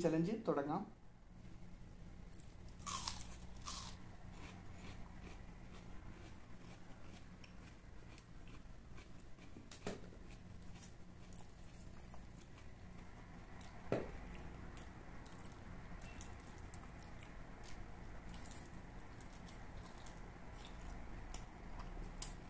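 A man chews food and smacks his lips close to a microphone.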